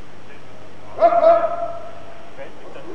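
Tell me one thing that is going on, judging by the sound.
A man grunts loudly with effort.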